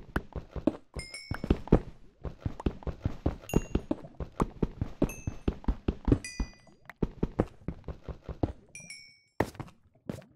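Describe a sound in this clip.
Small items pop up with short, high chimes.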